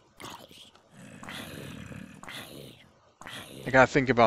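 Flames crackle on a burning zombie.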